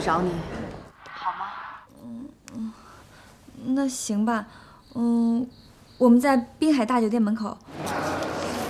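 A young woman answers on the phone in a quiet, hesitant voice.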